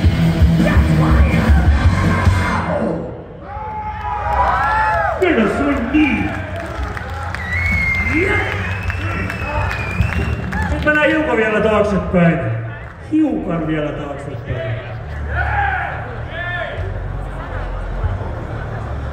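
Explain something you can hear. A band plays loud rock music with drums and keyboards.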